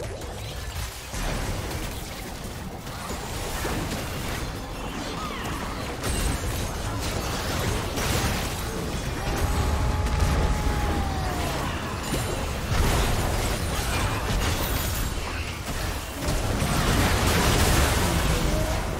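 Spell blasts and hits crackle and boom in a game battle.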